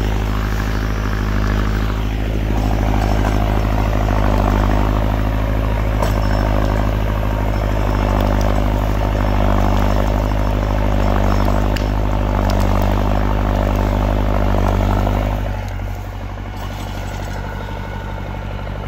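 A tractor engine rumbles steadily nearby, then drops to a lower idle.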